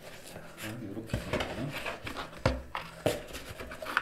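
Boxes slide and knock inside a cardboard carton.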